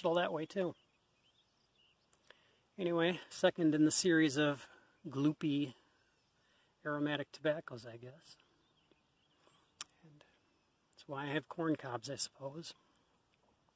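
A middle-aged man talks calmly, close up, in short bursts with pauses.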